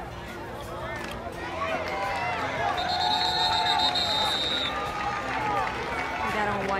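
A crowd of spectators cheers and shouts in outdoor stands.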